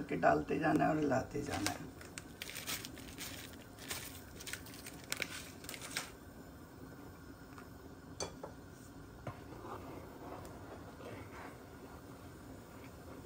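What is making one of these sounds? A creamy sauce bubbles softly in a pan.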